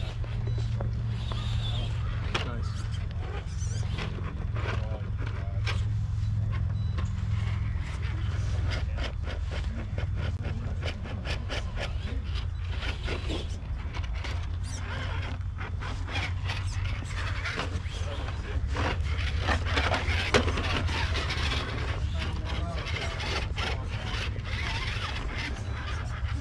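A small electric motor whines as a toy truck crawls over rocks.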